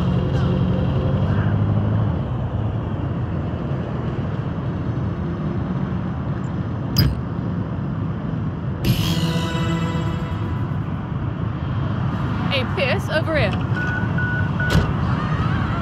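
A van engine hums steadily as it drives along.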